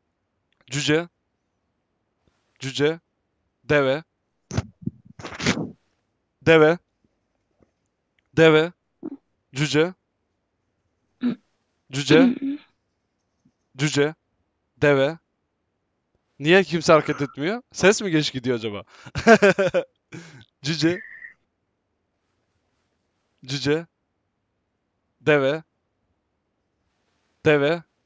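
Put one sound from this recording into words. A man speaks into a close microphone in short, animated bursts.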